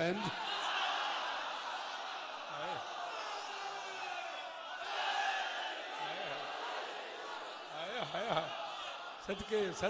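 A large crowd chants along in unison.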